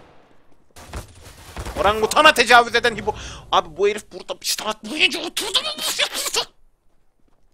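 A young man shouts with excitement into a close microphone.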